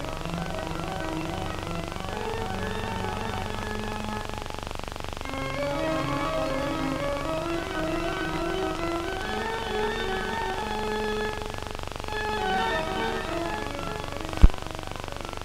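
A pipe organ plays a slow chord melody that echoes through a large hall.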